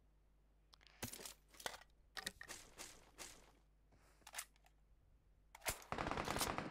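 Items are picked up with short rustling clicks.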